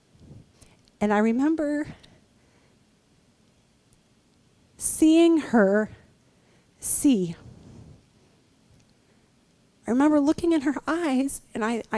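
A young woman speaks with animation through a microphone, in short bursts.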